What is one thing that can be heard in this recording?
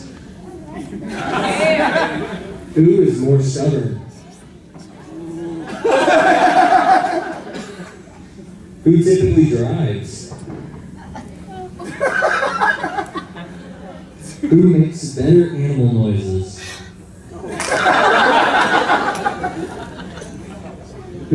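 A crowd laughs and cheers in a large room.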